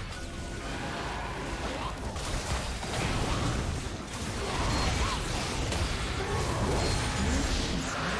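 Video game spells and attacks crackle and burst during a fight.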